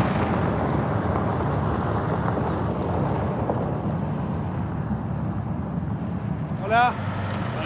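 A vehicle rumbles along a gravel road.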